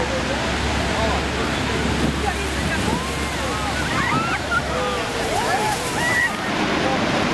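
A crowd of people shout and cheer excitedly nearby.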